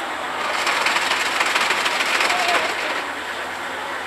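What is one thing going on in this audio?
An ice shaving machine grinds loudly.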